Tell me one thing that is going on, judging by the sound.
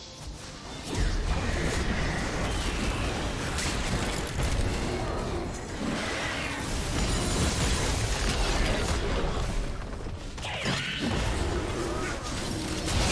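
Magic blasts and weapon hits crash and boom in a busy fight.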